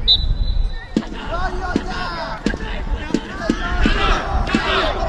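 A crowd of young spectators cheers and shouts.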